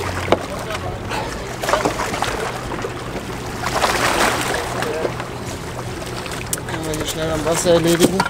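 An elderly man talks close by.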